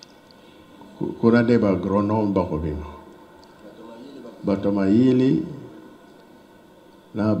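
An elderly man speaks through a microphone and loudspeakers in slow, drawn-out phrases, sounding like he's singing or chanting.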